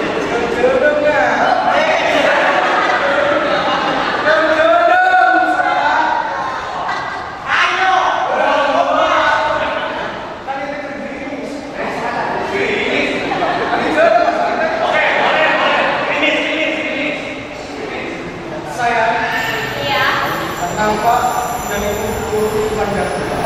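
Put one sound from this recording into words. A young man speaks loudly through a microphone.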